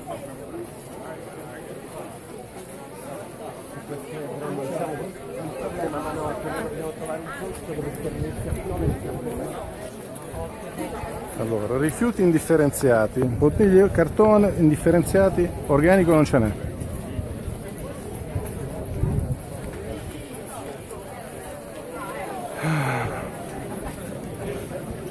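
A large crowd of men and women talks and chants nearby outdoors.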